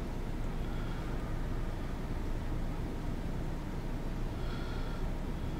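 A large ship's engine rumbles low and steady.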